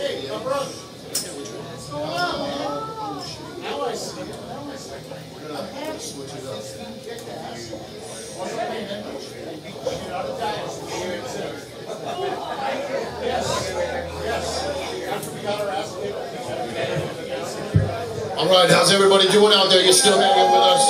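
A rock band plays loudly in a small room.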